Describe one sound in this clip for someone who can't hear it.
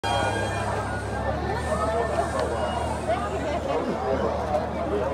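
A crowd of men and women chatters outdoors.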